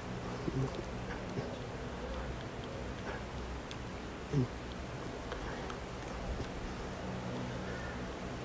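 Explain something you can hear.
A man murmurs a prayer quietly, close by.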